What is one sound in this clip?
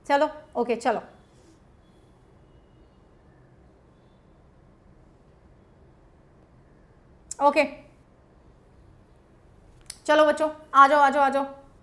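A young woman speaks calmly and closely into a microphone, with long pauses.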